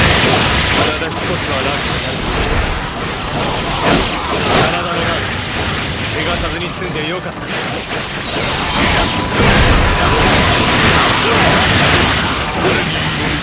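Swords clash and slash rapidly amid a noisy battle.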